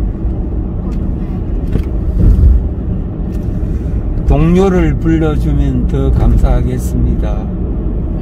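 A car drives along a road with a low, steady rumble.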